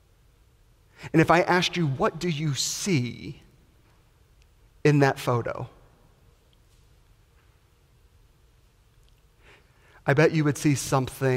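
A man preaches with animation through a microphone in an echoing hall, pausing between phrases.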